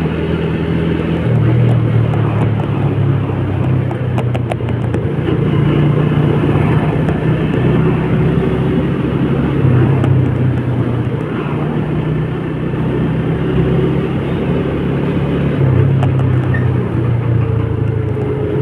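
Wind rushes past in a low roar.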